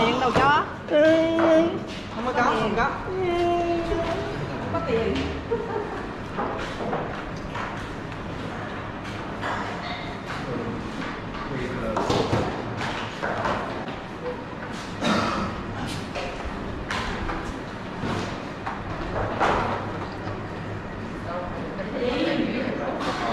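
Several men chatter in the background of a large echoing hall.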